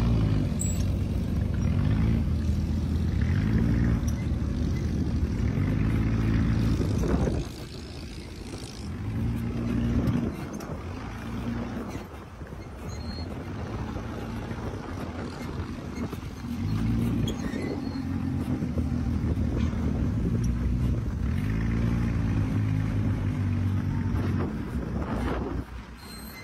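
A buggy engine drones and revs up and down while driving.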